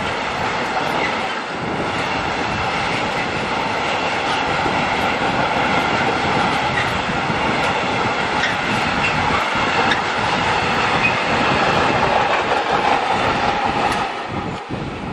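Train wheels squeal with a steady high whine as the wagons pass.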